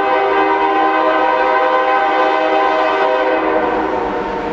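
A train horn blows loudly and steadily.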